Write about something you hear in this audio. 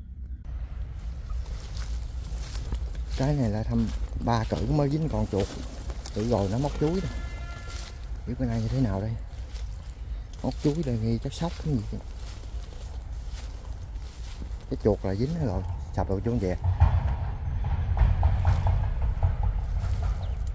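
Leaves and dry grass rustle as someone pushes through undergrowth.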